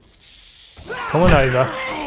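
A zombie growls loudly up close.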